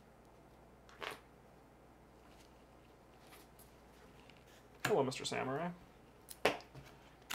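Playing cards slide and tap on a table.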